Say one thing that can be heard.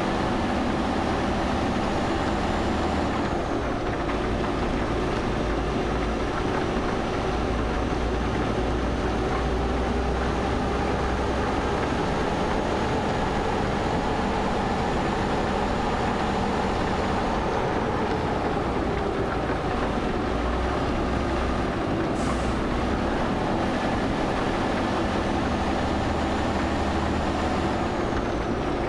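Windshield wipers sweep back and forth.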